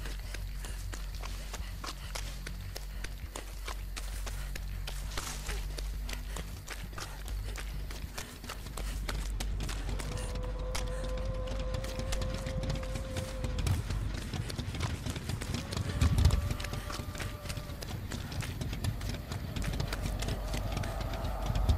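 Footsteps run quickly over dirt and dry brush.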